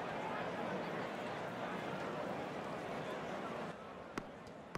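A crowd murmurs softly in the distance.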